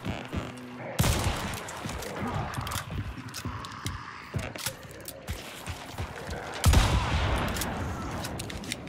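Loud gunshots boom and echo across open ground.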